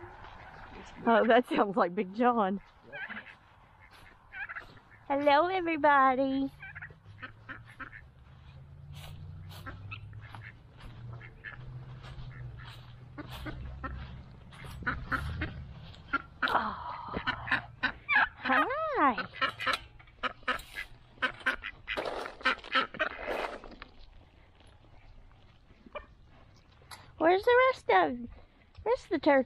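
Chickens cluck and call nearby.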